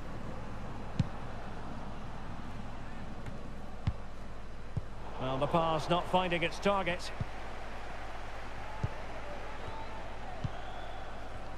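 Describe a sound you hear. A football thumps as players kick it.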